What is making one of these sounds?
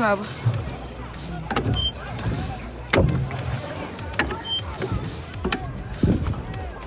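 Water slaps against the hull of a small boat.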